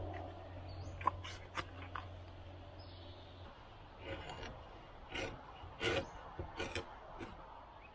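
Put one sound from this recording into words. A file scrapes along a metal blade in short strokes.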